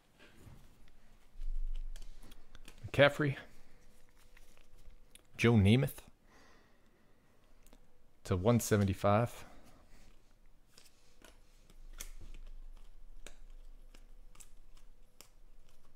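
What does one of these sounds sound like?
Trading cards rustle and flick softly as hands shuffle through them.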